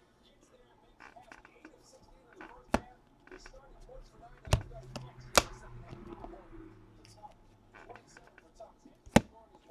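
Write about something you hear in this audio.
Trading cards rustle and slide against each other in a person's hands.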